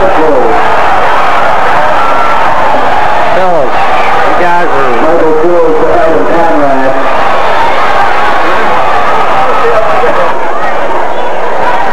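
A crowd in the stands cheers and shouts outdoors.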